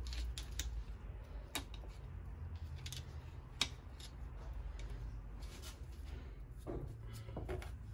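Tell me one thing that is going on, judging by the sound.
A screwdriver clicks and scrapes against metal.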